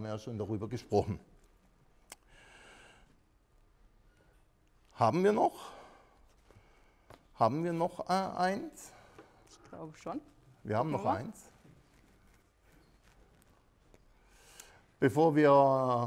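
A middle-aged man speaks calmly to an audience.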